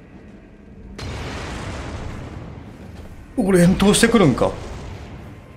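A fire bursts into flame with a loud roar.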